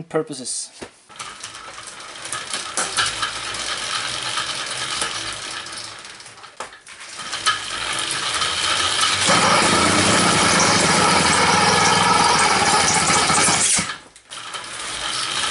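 A bicycle wheel whirs as it spins fast on a stand.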